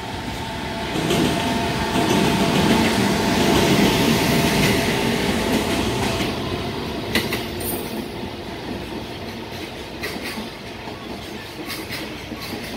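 A container freight train rumbles past.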